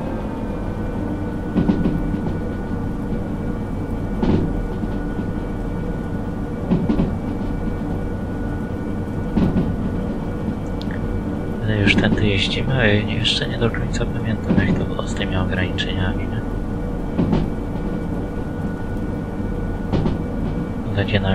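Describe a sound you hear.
A train engine hums steadily.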